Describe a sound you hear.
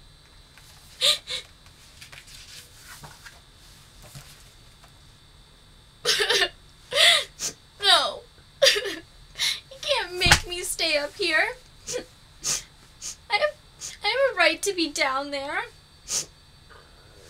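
A young woman sobs and wails close by.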